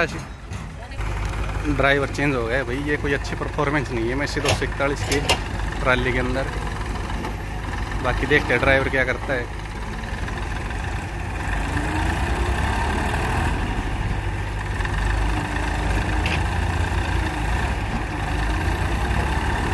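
A tractor engine chugs steadily close by.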